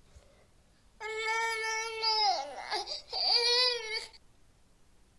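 A toddler wails in a high, drawn-out voice.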